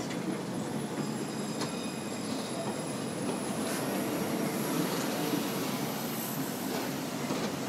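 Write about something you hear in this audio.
A tram's wheels squeal on the rails.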